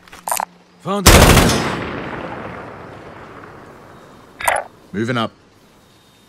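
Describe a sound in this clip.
A rifle fires single loud shots that echo and fade.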